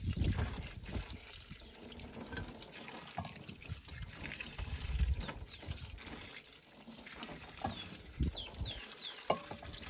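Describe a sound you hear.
Hands swish tomatoes around in water.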